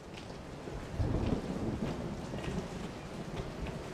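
A man talks quietly, close to a microphone.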